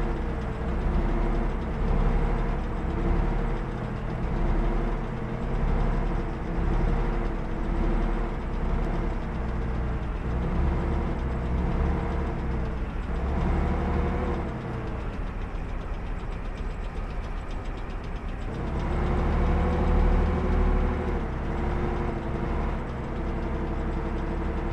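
Tank tracks clatter and squeak on the road.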